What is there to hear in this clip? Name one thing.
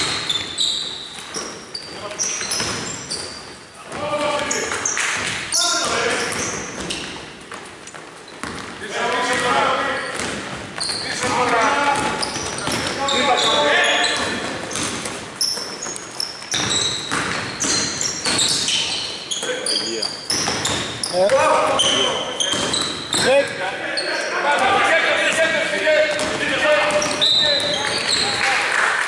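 Sneakers squeak sharply on a wooden court in an echoing hall.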